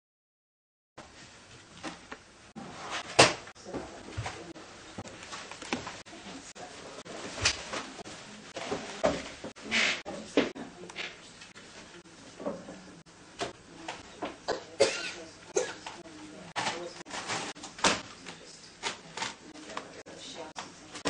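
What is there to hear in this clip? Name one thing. A small child's feet thump on carpeted stairs.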